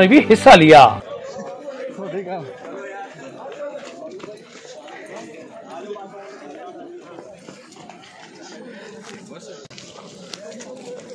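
A crowd of men chatter in a low murmur outdoors.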